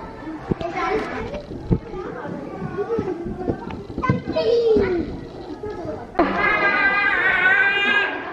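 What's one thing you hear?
A toddler babbles and squeals nearby.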